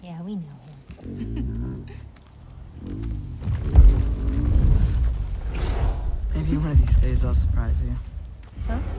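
A giant wolf growls low and deep.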